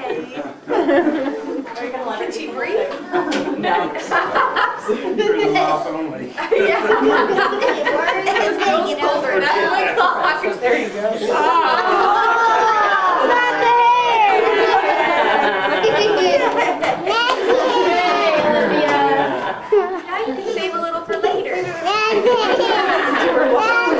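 Several people chatter and laugh close by.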